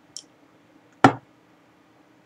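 A glass is set down on a wooden table with a sharp knock.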